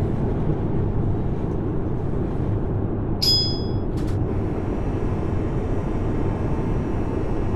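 A train rumbles steadily along the tracks through a tunnel.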